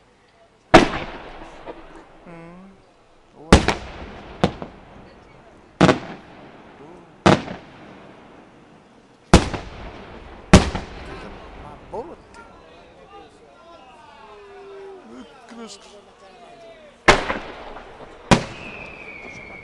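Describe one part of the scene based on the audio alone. Fireworks crackle and fizzle after bursting.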